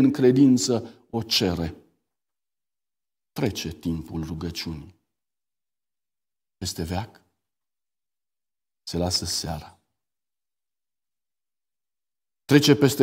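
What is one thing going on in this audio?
A middle-aged man reads aloud calmly into a microphone, with pauses.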